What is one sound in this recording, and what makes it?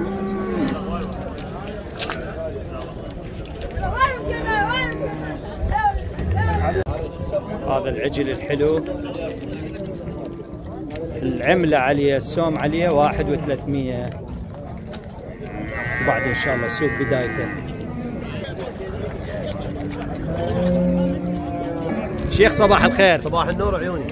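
A crowd of men talks nearby outdoors.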